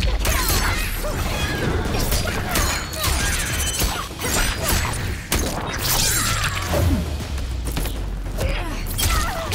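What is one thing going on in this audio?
Blades whoosh and slash through the air.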